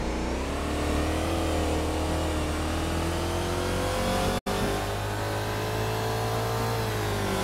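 A game car's engine hums at low speed.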